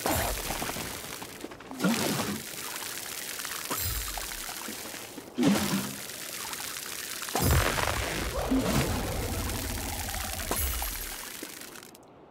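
Light footsteps patter quickly on soft grass.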